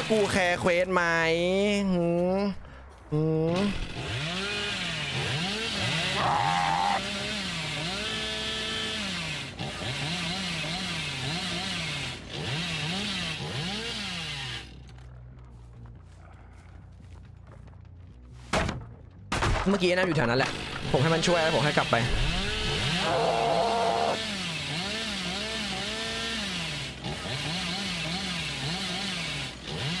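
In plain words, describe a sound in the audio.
A chainsaw engine revs and sputters.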